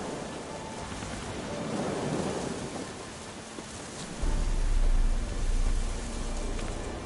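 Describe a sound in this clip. Footsteps thud on a dirt path.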